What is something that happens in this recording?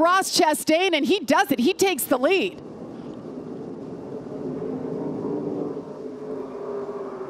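Racing engines roar loudly as trucks speed past, then fade to a steady distant drone.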